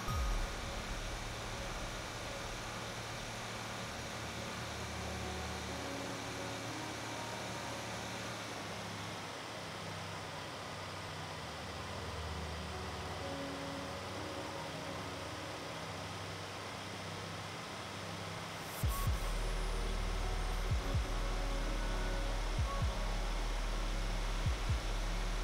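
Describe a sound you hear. A truck engine drones steadily as it drives along a highway.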